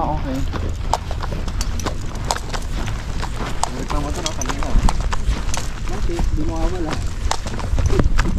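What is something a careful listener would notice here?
Footsteps crunch on a dirt track.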